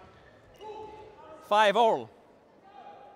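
Young men shout loudly in a large echoing hall.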